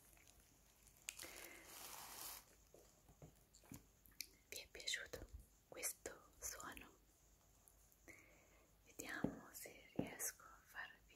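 A young woman speaks quietly and calmly, close by.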